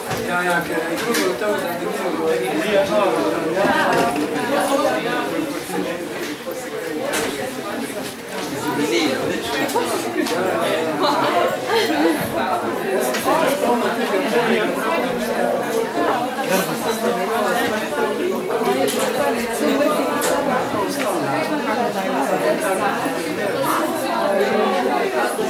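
Several men and women chat at once in a room with some echo.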